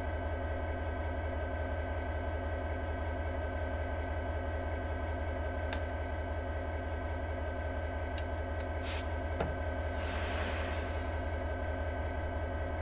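A diesel locomotive engine rumbles steadily.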